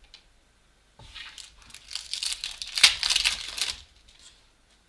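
Trading cards rustle and slide against each other in a hand.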